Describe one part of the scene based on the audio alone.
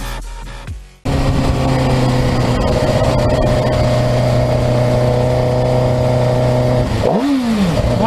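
A sport motorcycle engine hums while cruising along a highway.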